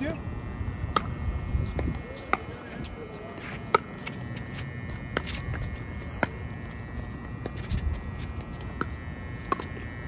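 Paddles strike a plastic ball with sharp pops.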